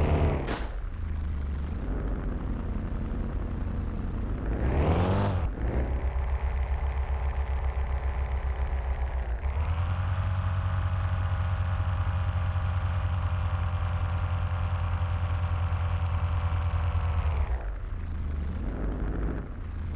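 A van engine hums steadily, rising and falling in pitch as it speeds up and slows down.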